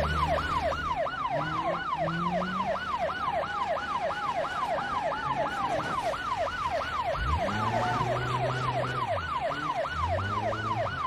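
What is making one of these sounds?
A police siren wails in a fast, repeating whoop.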